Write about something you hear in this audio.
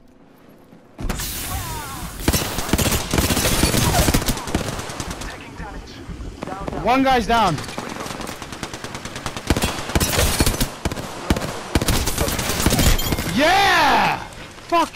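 Rapid gunfire rattles in quick bursts.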